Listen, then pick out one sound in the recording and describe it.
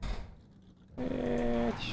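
A man talks into a microphone, close up.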